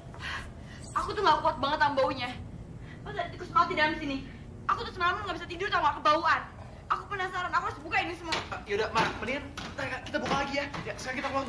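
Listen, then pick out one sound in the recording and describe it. A young woman cries and speaks in distress close by.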